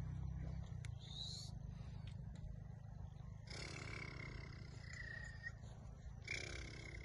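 A caged bird chirps and trills loudly close by.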